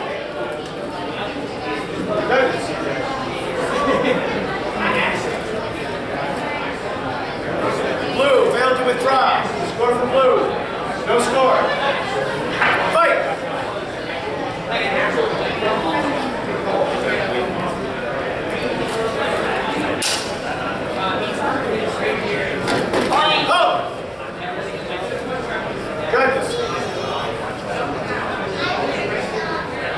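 Men and women talk nearby in a large echoing hall.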